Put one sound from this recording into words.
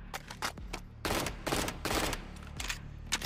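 A rifle fires a quick burst of loud shots.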